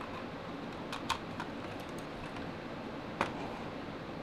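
Small plastic parts click and snap together.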